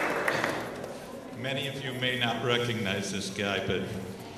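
An elderly man speaks through a microphone over loudspeakers in a large hall.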